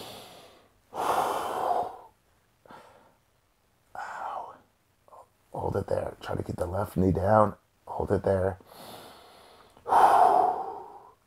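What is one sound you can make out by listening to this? A man breathes out loudly.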